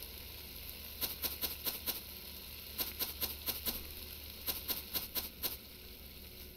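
Dried herbs rattle as they are shaken out of a jar.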